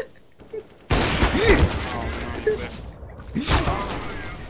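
A sniper rifle fires a loud, booming shot.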